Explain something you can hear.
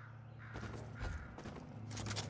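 A character lands with a heavy thud.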